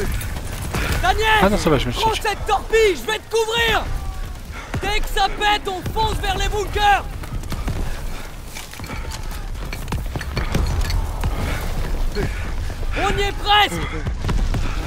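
A soldier shouts urgently.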